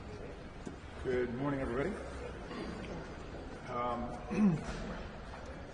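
A middle-aged man speaks briefly and lightly into nearby microphones.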